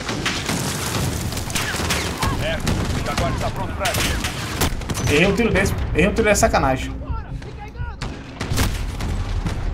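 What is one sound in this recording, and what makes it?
Rifle shots crack sharply.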